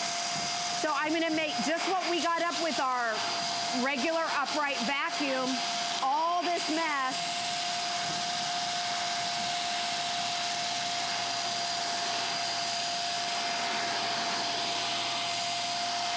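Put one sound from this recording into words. A vacuum cleaner whirs steadily as it sucks up grit.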